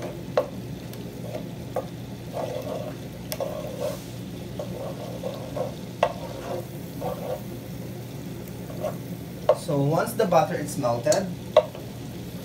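A wooden spoon scrapes and knocks against a metal pot.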